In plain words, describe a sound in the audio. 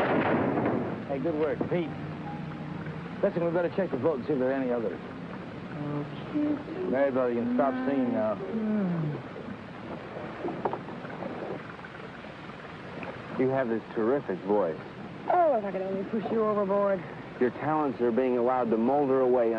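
A man talks loudly outdoors.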